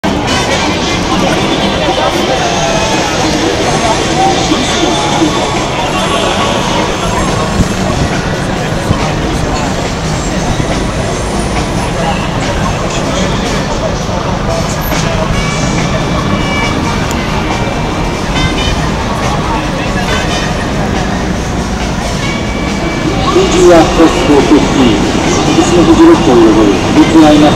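A busy crowd chatters and murmurs all around outdoors.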